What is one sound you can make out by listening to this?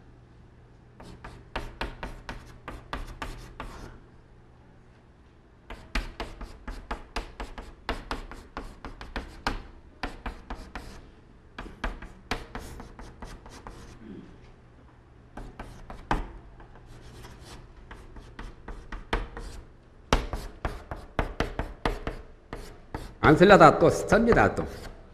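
Chalk taps and scrapes on a board in quick strokes.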